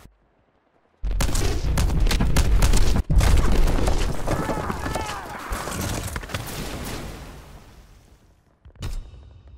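A huge explosion booms and rumbles, then slowly fades.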